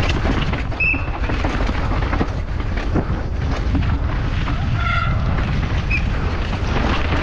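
Wind roars steadily across a microphone.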